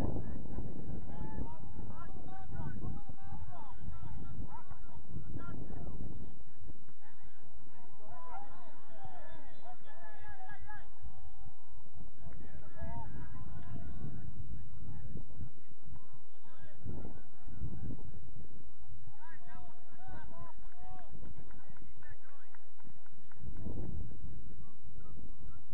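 Men shout and call out across an open field in the distance.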